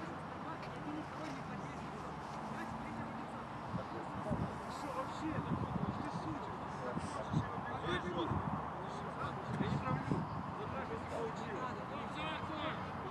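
Wind blows steadily across an open outdoor space.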